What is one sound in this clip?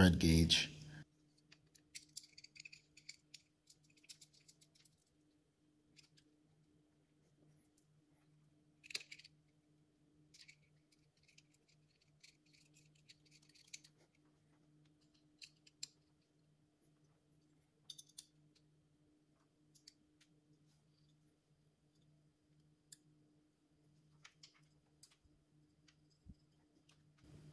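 Small metal parts click and tap as hands fit them together.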